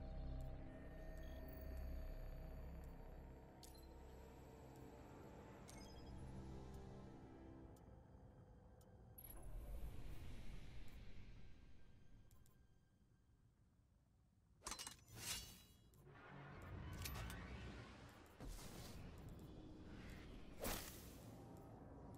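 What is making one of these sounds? Soft electronic menu tones click and chime now and then.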